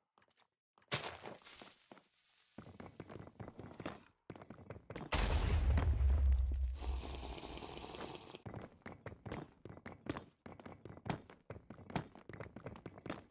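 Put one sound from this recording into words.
Blocks crack and break under quick blows.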